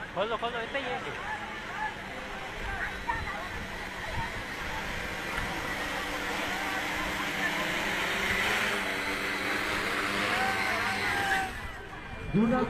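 A drone's rotors whir and buzz overhead, growing louder as it lands.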